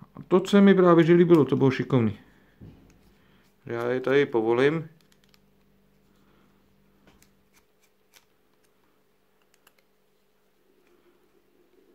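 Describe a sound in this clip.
A small screwdriver clicks and scrapes against a screw in a plastic part.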